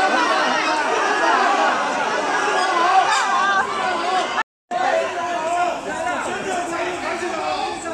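A large crowd of men and women shout and call out excitedly close by.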